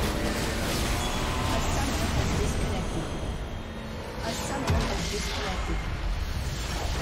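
Game battle effects clash and blast loudly.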